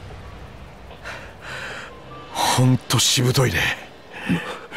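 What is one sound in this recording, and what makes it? A young man speaks in a low, menacing voice.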